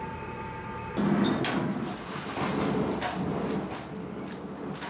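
A fire roars and crackles with sparks.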